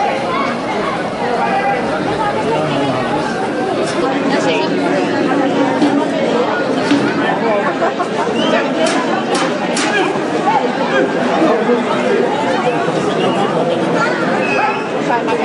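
A crowd of spectators chatters and shouts loudly outdoors.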